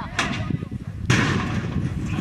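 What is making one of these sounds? A metal gate clangs open.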